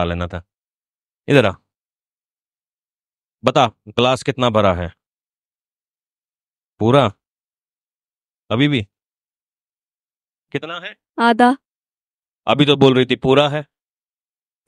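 A man speaks through a microphone in short, earnest phrases with long pauses.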